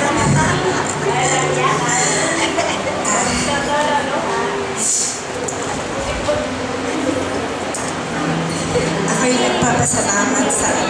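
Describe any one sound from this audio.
An older woman speaks animatedly into a microphone over a loudspeaker, in an echoing room.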